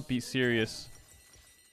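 A man speaks briefly and loudly into a close microphone.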